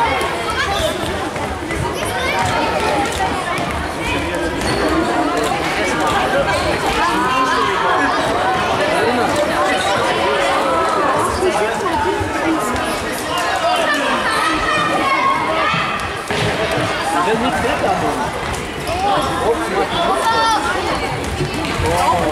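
A ball thuds against a hard floor and is kicked.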